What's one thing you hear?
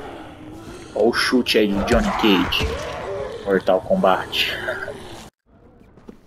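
A zombie groans and snarls close by.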